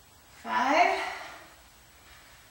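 A young woman speaks with energy, close by.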